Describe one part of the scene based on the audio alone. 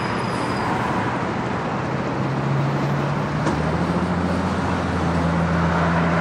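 Traffic roars steadily on a busy highway nearby.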